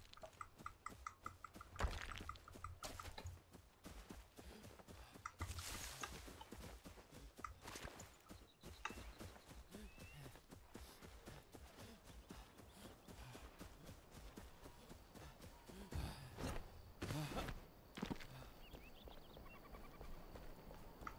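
Footsteps rustle through grass as a character runs.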